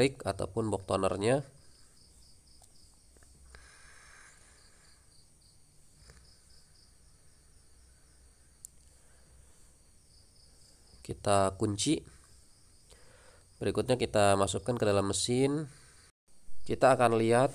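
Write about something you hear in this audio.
Plastic parts click and knock softly as a cartridge is pushed into place.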